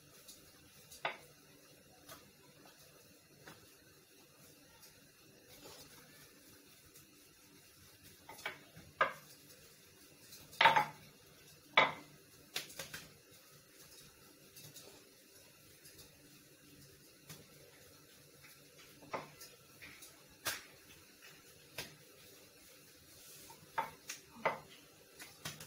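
A wooden rolling pin knocks against a stone counter now and then.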